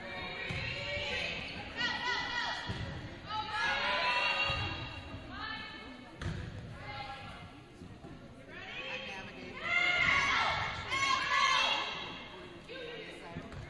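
Young women shout calls to each other in an echoing gym.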